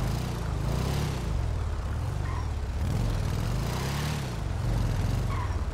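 A motorcycle engine rumbles steadily, rising and falling in pitch as it revs.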